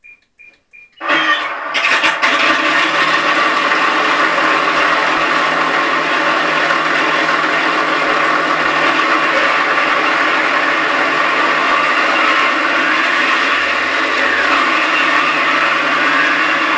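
Electric motors on a model plane whir loudly and steadily.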